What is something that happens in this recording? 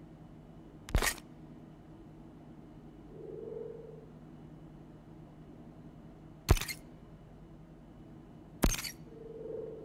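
A menu button clicks.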